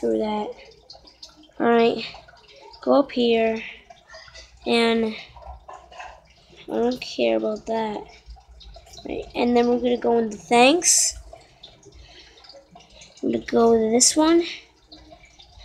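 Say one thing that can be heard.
A young boy speaks with animation close to a microphone, in short bursts.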